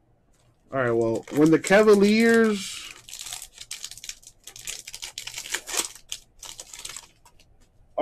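A foil wrapper crinkles and tears as a pack is opened.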